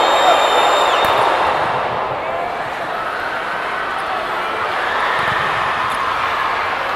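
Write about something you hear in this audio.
A volleyball is spiked with a sharp slap.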